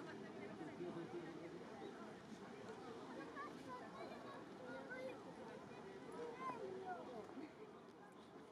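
A crowd of people murmurs and chatters outdoors at a distance.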